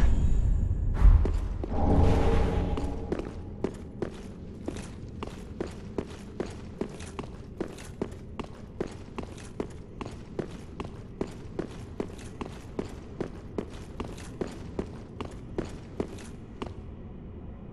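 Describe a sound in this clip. Armoured footsteps clank quickly on a stone floor in a large echoing hall.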